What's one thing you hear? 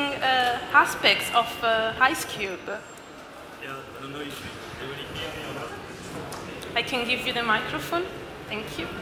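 A woman speaks into a microphone, heard through loudspeakers in a large room.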